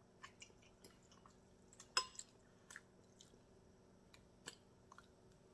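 A metal fork clinks against a glass bowl.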